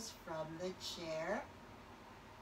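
A woman speaks briefly nearby.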